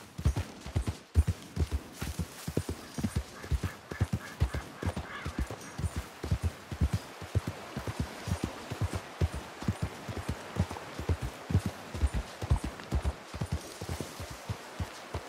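Hooves clop steadily on hard ground.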